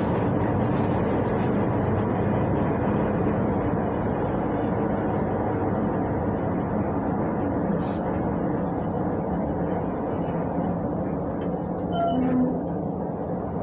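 A bus engine rumbles steadily while the bus drives along.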